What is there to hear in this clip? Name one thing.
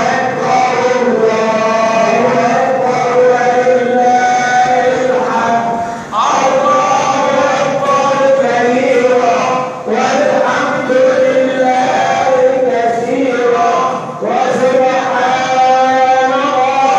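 A crowd of men chants together in long, drawn-out notes, echoing in a large hall.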